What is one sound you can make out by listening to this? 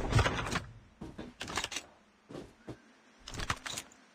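Short game sound effects clink as items are picked up.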